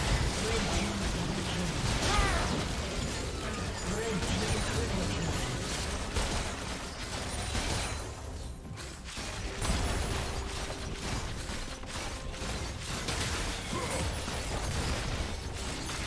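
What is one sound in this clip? Game spell and weapon effects crackle and boom in a busy battle.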